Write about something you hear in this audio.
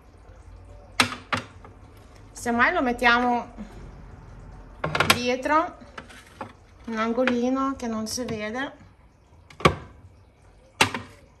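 A glass container clinks onto a fridge shelf.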